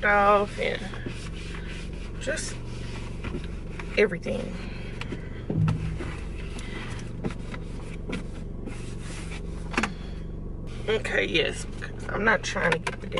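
A car engine hums steadily at idle.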